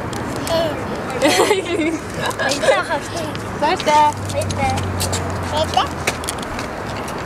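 Children laugh and giggle close by.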